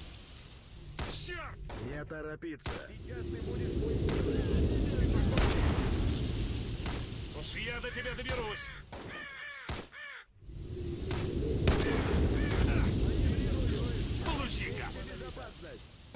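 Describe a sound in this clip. Crows caw overhead.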